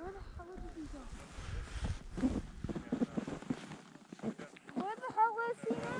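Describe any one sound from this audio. Skis hiss and scrape across snow.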